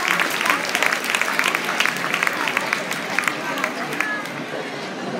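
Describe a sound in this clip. A large crowd claps and cheers in a big echoing hall.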